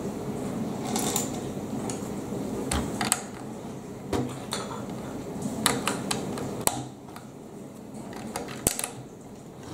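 Plastic building bricks click and snap as they are pressed together.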